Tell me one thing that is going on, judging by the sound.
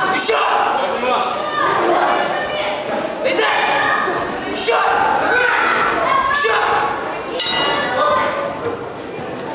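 A man speaks loudly and with animation in a large echoing hall.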